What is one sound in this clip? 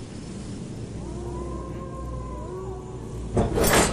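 An iron gate creaks slowly open.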